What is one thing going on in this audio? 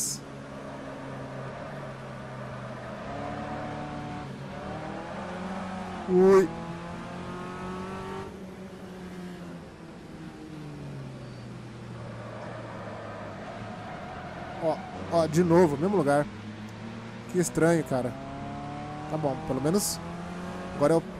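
A racing car engine drones and revs up and down through gear changes.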